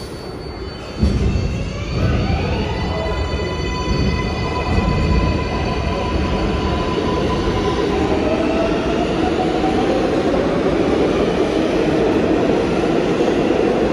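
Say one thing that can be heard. A subway train hums and rumbles as it pulls out of an echoing station, its motors whining upward.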